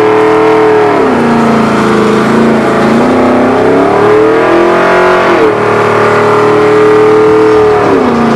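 Tyres squeal and hiss as they spin in place.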